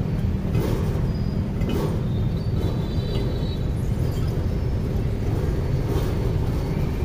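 A pedal exercise machine creaks and knocks as it turns.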